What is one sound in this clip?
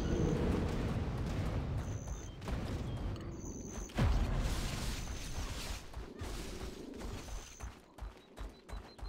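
Footsteps thud and rustle through tall grass.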